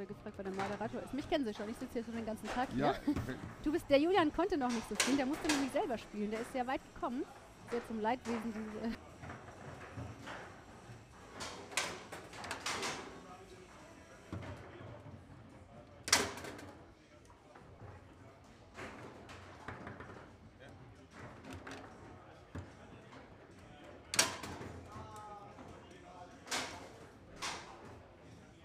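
A foosball ball cracks against the rods and walls of a table.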